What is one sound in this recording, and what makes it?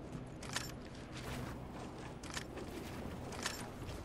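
Wooden building pieces thud into place in a game.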